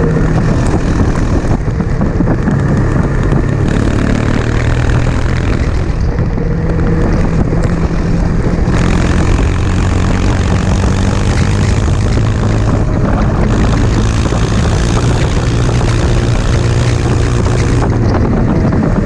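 A motorcycle engine roars steadily, rising and falling in pitch as it leans through bends.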